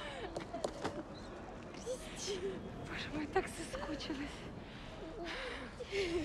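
A woman sobs up close.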